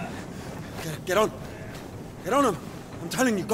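A young man gives a sharp order.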